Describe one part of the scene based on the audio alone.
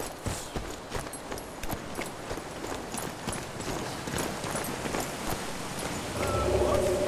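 Footsteps run quickly up stone steps.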